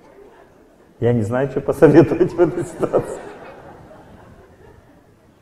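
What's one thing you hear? A middle-aged man laughs into a microphone.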